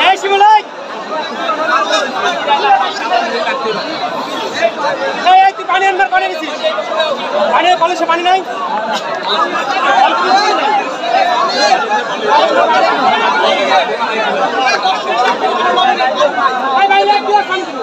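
A large outdoor crowd chatters and calls out throughout.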